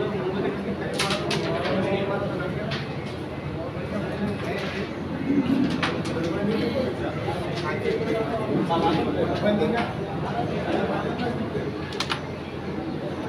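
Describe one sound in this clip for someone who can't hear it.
Wooden game pieces clack sharply against each other on a board.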